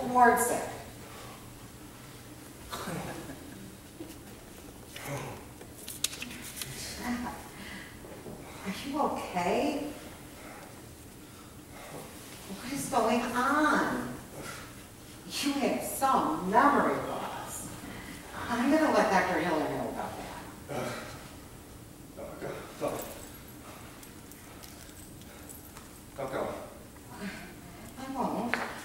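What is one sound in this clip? A woman speaks calmly on a stage, heard from the audience.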